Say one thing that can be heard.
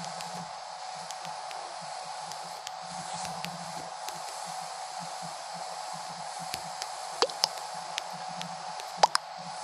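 Light keyboard taps click in quick, uneven succession.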